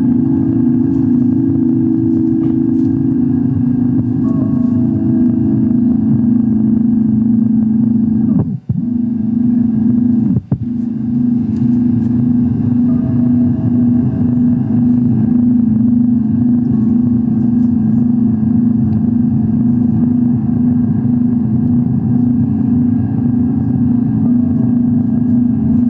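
Electronic music from a synthesizer drones steadily with a low pulsing hum, briefly cutting out twice.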